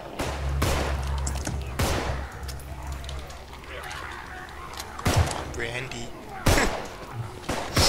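A pistol fires sharp, loud shots.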